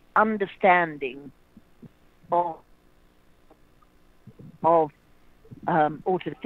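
A young woman speaks calmly in short phrases, close to the microphone.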